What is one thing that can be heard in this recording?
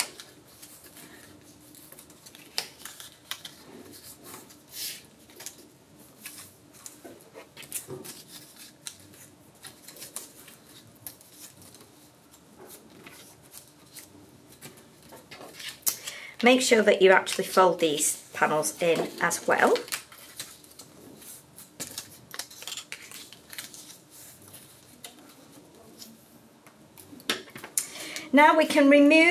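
Paper rustles and crinkles as it is handled and folded.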